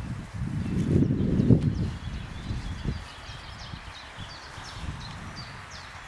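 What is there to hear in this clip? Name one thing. A dog pants softly.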